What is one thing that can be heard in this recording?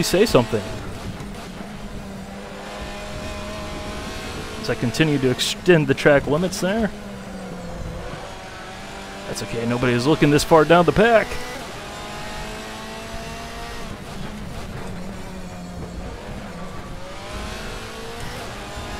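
A racing car engine roars steadily, rising in pitch through the gears and dropping sharply as it shifts down.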